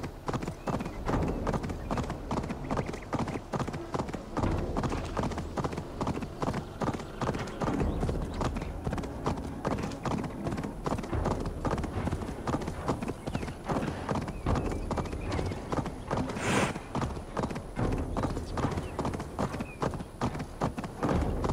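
A horse's hooves clop quickly on a gravel path.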